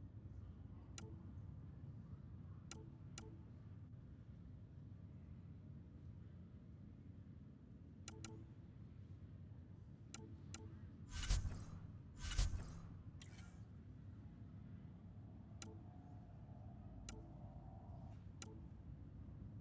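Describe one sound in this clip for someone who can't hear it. Short soft clicks sound as game menu selections change.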